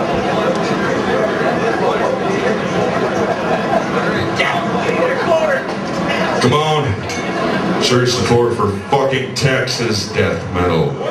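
A heavy metal band plays loud distorted guitars and drums in an echoing hall.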